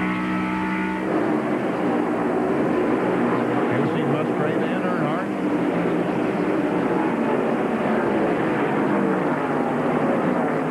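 Race cars roar past one after another.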